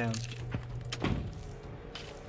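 A game card lands on the table with a soft thud.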